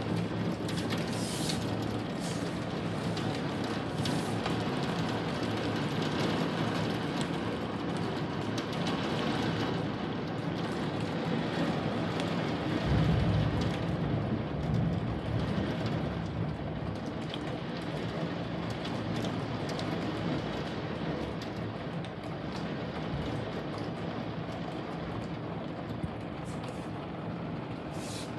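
Heavy rain pours steadily and patters against a window.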